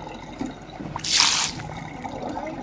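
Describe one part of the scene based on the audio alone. Water splashes briefly from a tap.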